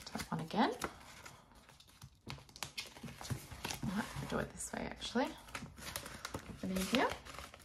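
Paper banknotes rustle between fingers.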